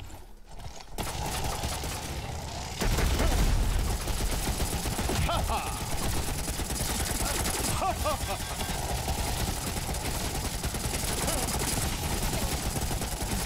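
Gunfire and blasts crackle loudly.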